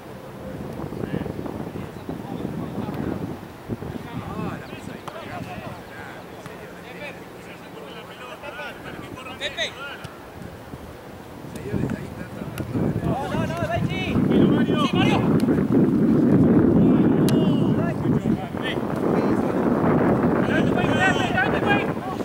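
Players shout to each other across an open field outdoors.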